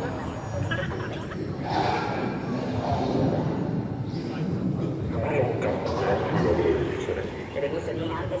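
A crowd of adults murmurs and chats in a large echoing hall.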